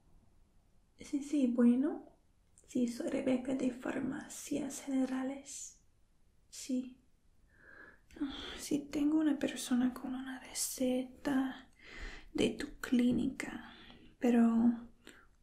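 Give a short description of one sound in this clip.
A young woman speaks softly and closely into a phone, as if to a caller.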